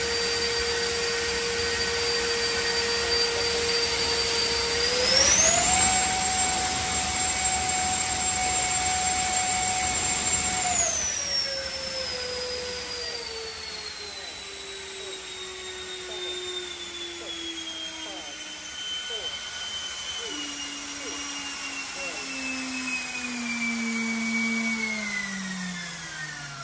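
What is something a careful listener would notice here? An electric ducted fan motor whines steadily, rises sharply in pitch, holds, then slowly winds down.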